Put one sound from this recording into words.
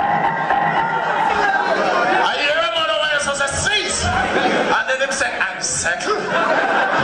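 A man raps energetically into a microphone over a loudspeaker.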